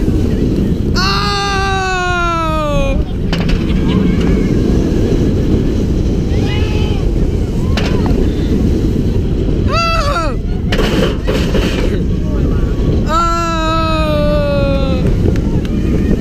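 A young woman screams loudly, her voice falling in pitch.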